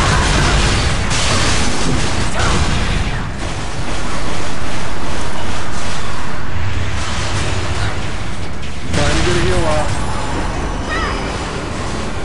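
Game combat effects whoosh and crash in a dense mix.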